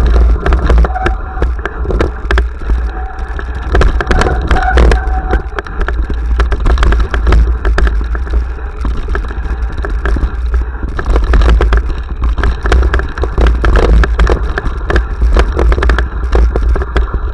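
A bicycle rattles over bumps.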